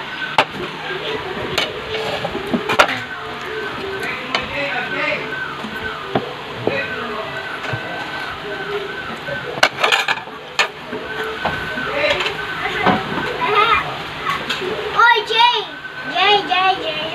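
A toddler babbles and coos close by.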